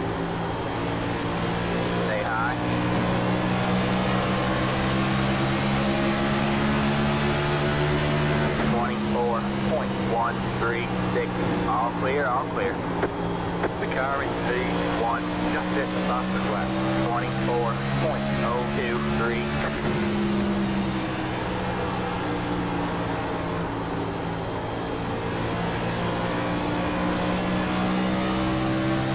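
A race car engine drones loudly and steadily, its pitch dipping slightly and rising again.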